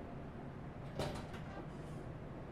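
A metal door handle rattles and clicks.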